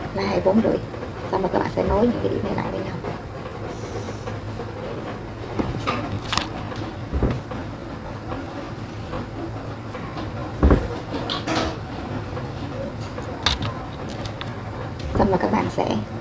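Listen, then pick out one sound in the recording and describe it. A plastic ruler knocks and slides on paper.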